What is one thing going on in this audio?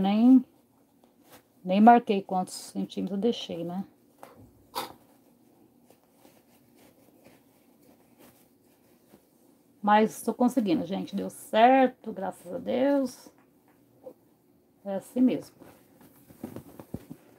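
Cloth rustles softly as hands handle it.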